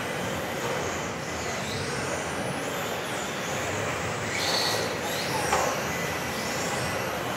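Electric radio-controlled cars whine as they speed up and slow around a track in a large echoing hall.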